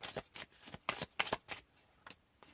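Playing cards riffle and flick as they are shuffled.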